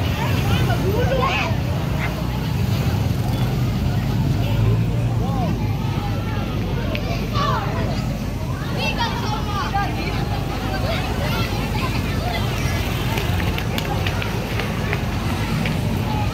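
Motorbike engines putter past.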